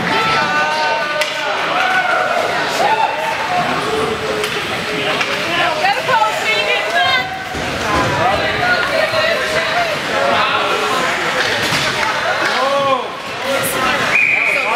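Spectators shout and cheer in an echoing arena.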